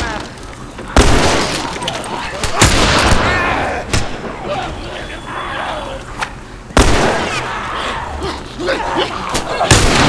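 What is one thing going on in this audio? Gunshots ring out loudly several times.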